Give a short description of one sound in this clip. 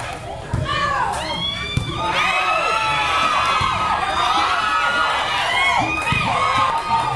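A basketball thuds on the court.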